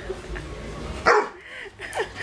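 A large dog jumps down from a bed with a thump.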